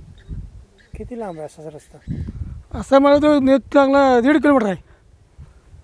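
An elderly man speaks with animation close to a clip-on microphone.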